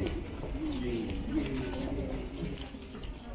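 Passers-by chatter nearby outdoors.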